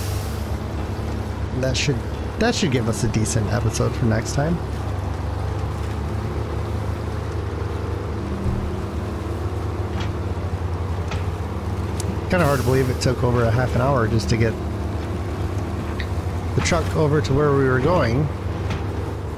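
A heavy truck engine rumbles steadily as the truck crawls over rough ground.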